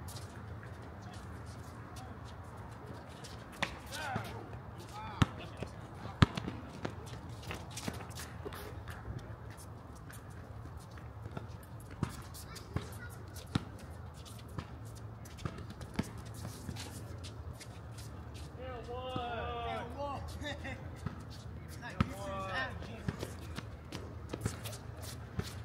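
A ball bounces on a hard outdoor court with sharp thuds.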